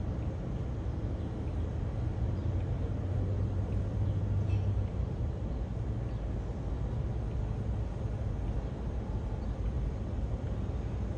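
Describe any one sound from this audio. A jet airliner's engines rumble steadily as the plane taxis past.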